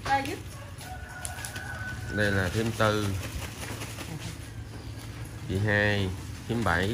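Middle-aged women talk and call out nearby.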